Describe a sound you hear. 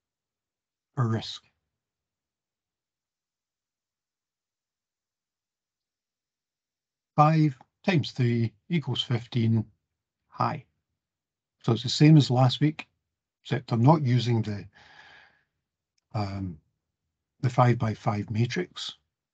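An older man speaks calmly through an online call microphone, with pauses.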